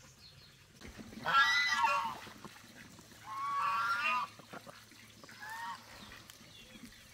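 Ducks quack loudly nearby.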